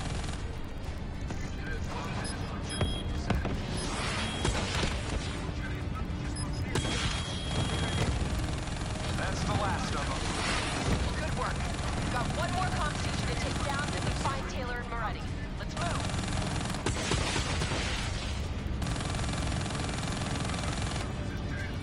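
Heavy gunfire rattles and booms.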